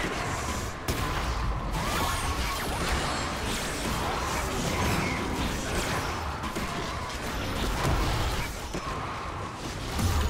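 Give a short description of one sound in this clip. Game spell effects whoosh, zap and crackle in quick bursts.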